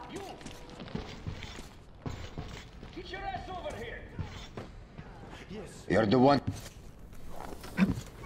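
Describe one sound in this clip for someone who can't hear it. A man speaks gruffly.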